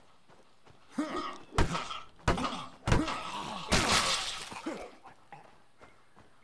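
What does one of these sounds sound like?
Heavy blows thud during a scuffle.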